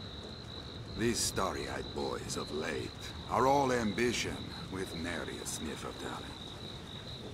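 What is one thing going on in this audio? A man speaks calmly in a low voice.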